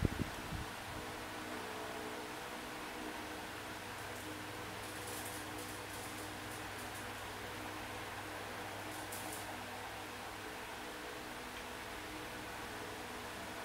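Upbeat electronic game music plays steadily from a tablet speaker.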